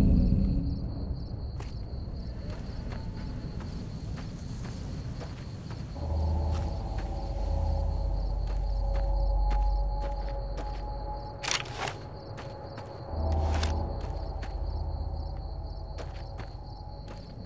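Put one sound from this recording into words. Footsteps crunch on gravel at a steady pace.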